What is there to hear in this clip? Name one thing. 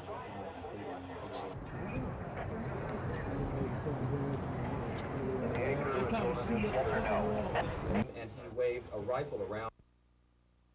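A crowd of men talks and murmurs outdoors.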